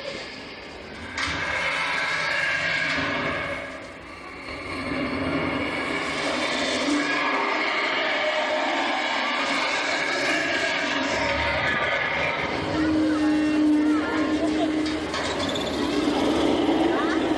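A tour tram rumbles along steadily.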